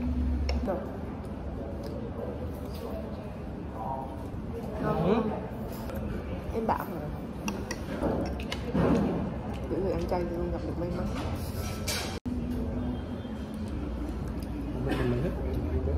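Cutlery clinks and scrapes against a plate.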